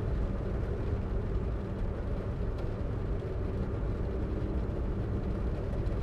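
A car engine roars steadily as the car speeds along a road.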